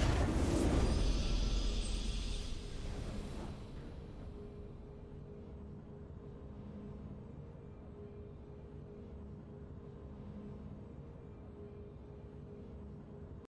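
A short victory fanfare plays softly.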